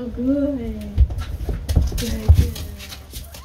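A horse's hooves thud on a wooden floor.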